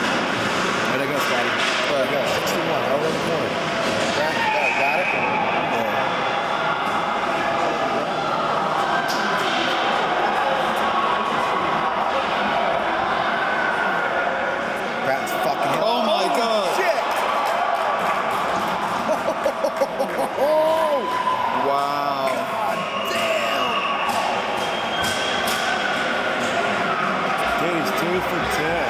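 A large crowd cheers and shouts loudly in an echoing arena.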